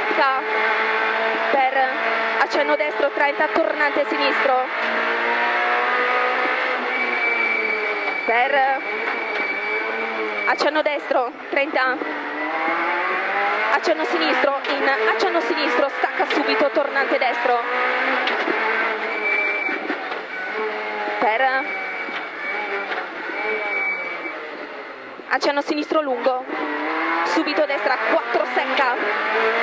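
A rally car engine roars loudly from inside the cabin, revving up and down through gear changes.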